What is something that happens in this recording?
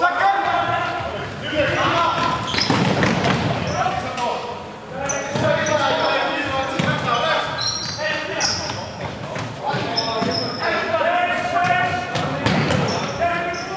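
Sneakers squeak sharply on a hard indoor floor.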